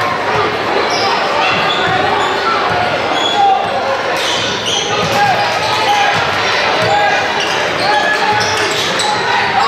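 A large crowd cheers and chatters in an echoing gym.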